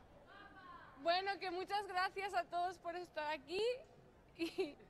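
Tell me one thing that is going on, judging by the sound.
A young woman sings loudly close by.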